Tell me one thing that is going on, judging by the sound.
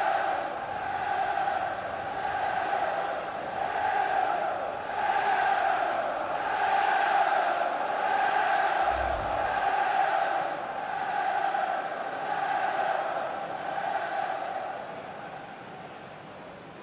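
A large stadium crowd roars and cheers, swelling and falling.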